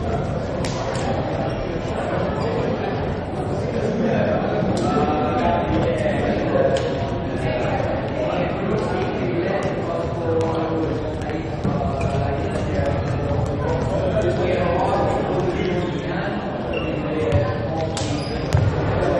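A volleyball is struck with sharp slaps in an echoing sports hall.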